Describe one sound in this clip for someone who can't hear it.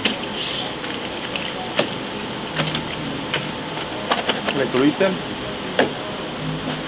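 Small items click and clatter on a table.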